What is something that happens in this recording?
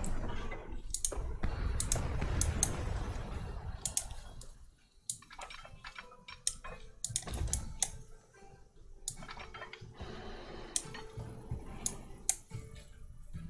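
Short interface clicks sound now and then.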